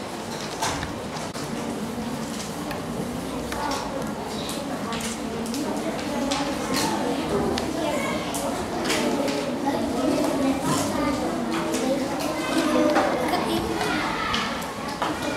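Children chatter and talk quietly nearby in a room.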